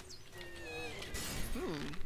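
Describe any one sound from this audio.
A bowstring creaks as it is drawn back.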